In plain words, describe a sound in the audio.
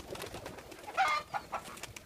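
A pigeon flaps its wings.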